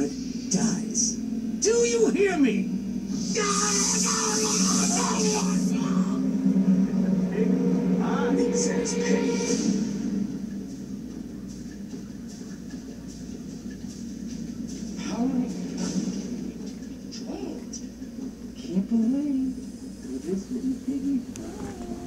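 A television plays game sounds through its speakers.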